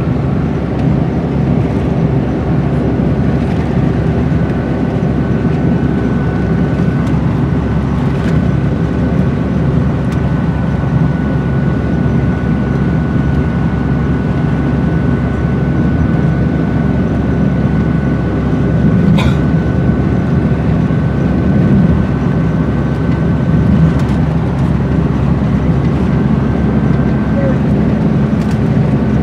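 A vehicle engine hums steadily with road rumble, heard from inside.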